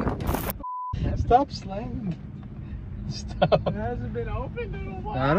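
A young man laughs and chats inside a car.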